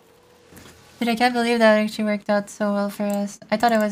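A young woman speaks with animation in a high voice, close to a microphone.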